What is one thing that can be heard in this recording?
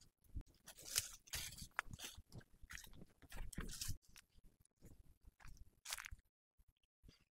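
Footsteps crunch and rustle through dry plants outdoors.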